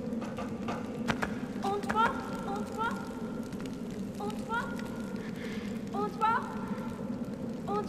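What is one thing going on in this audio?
Light footsteps tap on a stone floor.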